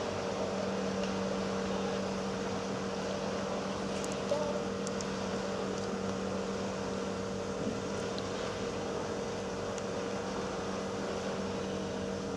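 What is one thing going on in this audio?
Paddle wheels churn the river water.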